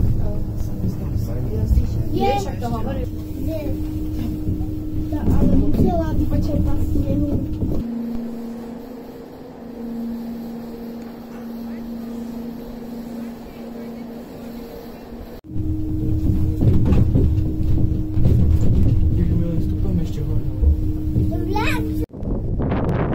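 A funicular car rumbles and hums steadily as it travels along its track.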